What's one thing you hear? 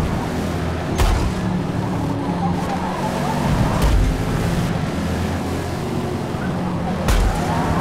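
Cars bump together with sharp thuds.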